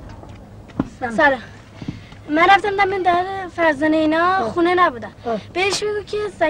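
A young boy talks with animation nearby.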